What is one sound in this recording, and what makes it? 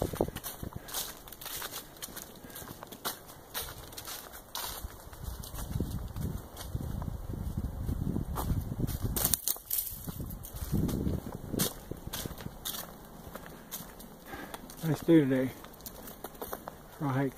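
Footsteps crunch on leaves and gravel.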